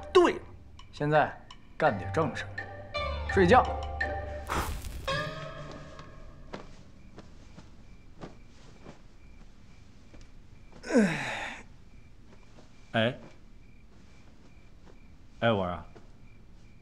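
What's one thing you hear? A middle-aged man answers in a low voice.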